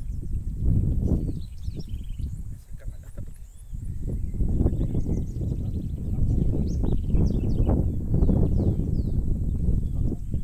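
Wind blows outdoors, rumbling against the microphone.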